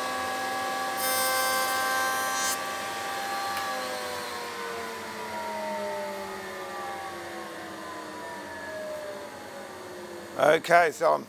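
A router motor hums steadily, then slowly winds down.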